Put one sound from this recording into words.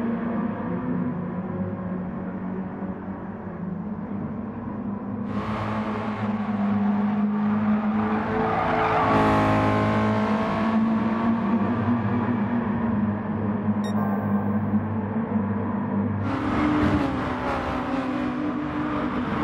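Other racing cars' engines drone nearby.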